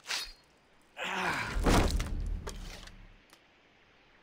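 A knife slices wetly through an animal's hide.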